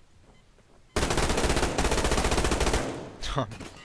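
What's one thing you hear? A rifle fires a fast, rattling burst of shots.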